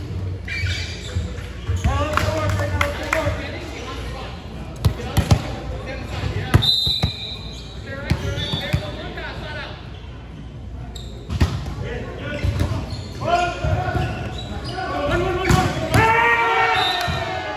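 Young men call out and shout across a large echoing gym.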